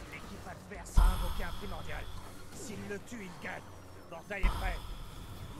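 Explosions from a game boom.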